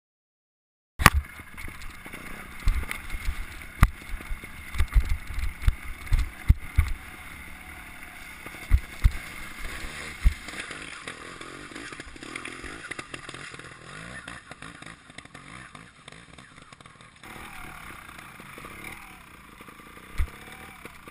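A motorcycle engine revs and sputters close by.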